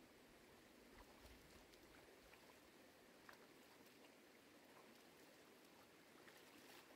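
Water splashes as a woman washes her hands in a stream.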